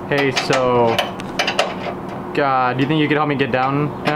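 Metal parts clink as a man works on an engine.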